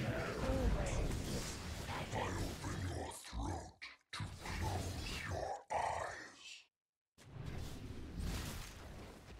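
Magic spells and weapon blows crackle and clash in a fight.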